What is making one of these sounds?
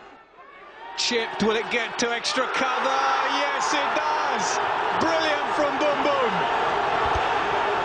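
Players shout and cheer loudly.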